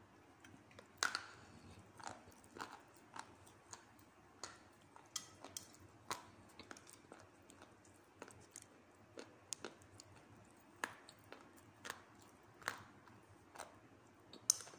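Dry clay snaps and crumbles between fingers, close up.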